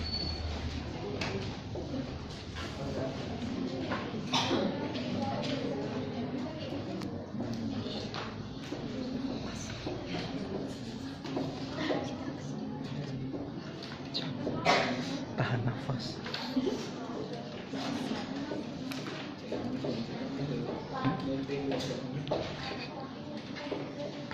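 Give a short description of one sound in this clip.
A woman speaks calmly to a class.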